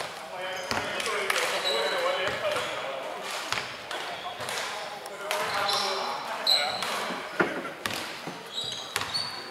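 Young men call out to each other in a large echoing gym.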